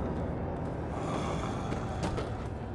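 A man bellows loudly.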